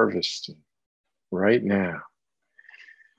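An older man speaks calmly and warmly, close to a microphone.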